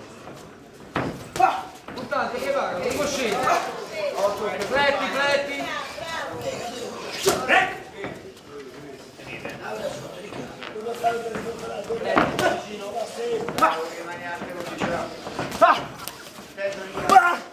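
Boxing gloves thud against bodies in sharp blows.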